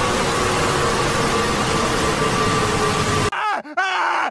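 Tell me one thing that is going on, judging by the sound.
A woman screams in panic.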